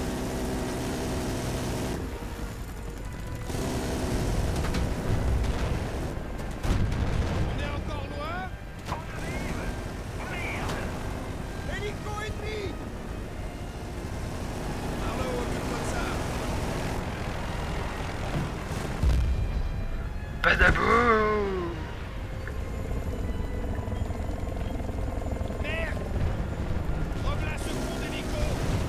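A rotary machine gun fires in rapid bursts.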